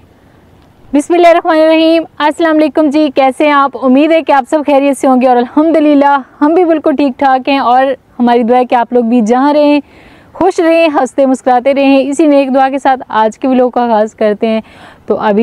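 A woman speaks with animation close by, outdoors.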